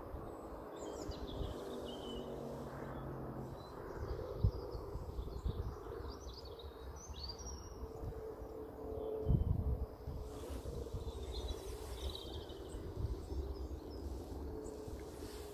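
A bird chirps nearby.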